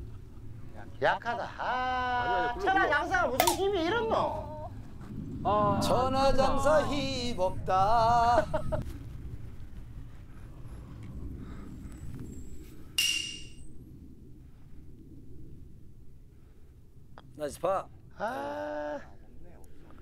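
Men talk and exclaim with animation outdoors.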